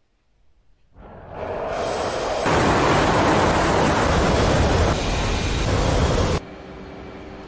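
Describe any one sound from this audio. A jet engine roars loudly as a fighter plane flies past, then cuts off abruptly.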